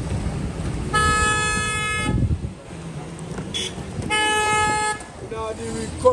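A car horn honks in long blasts.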